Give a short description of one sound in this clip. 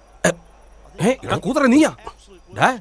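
A man speaks excitedly to a crowd.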